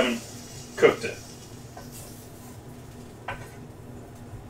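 Metal tongs clatter against a cast iron pan.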